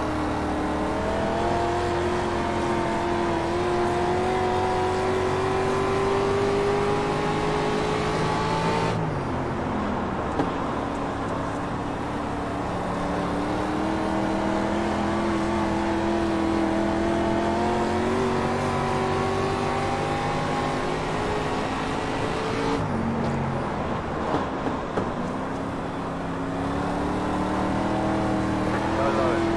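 A race car engine roars steadily, rising in pitch along the straights and dropping into the turns.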